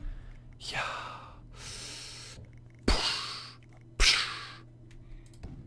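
Soft whooshing sounds sweep by in quick succession.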